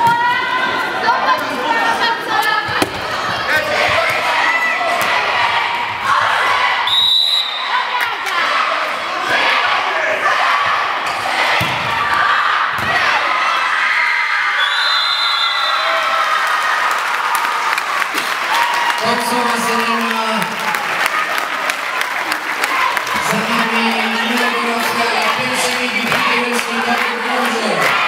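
Young women shout and cheer, echoing in a large hall.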